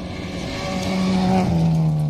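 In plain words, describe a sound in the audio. Tyres crunch and spray over gravel.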